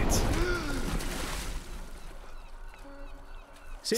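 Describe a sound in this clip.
Water splashes and churns around a swimmer.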